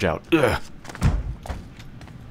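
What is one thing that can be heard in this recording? A wooden cupboard door bangs open with a heavy thud.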